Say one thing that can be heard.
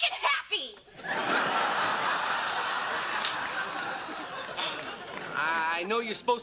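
An audience laughs loudly.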